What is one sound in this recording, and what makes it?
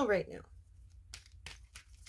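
Cards rustle as a woman shuffles them.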